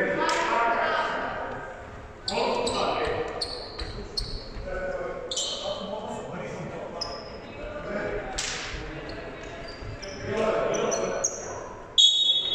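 Voices of young men and boys echo through a large hall.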